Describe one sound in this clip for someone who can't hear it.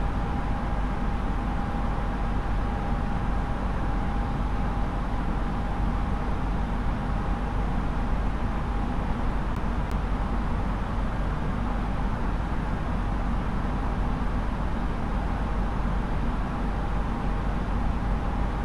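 Jet engines and rushing air roar steadily in an airliner in flight.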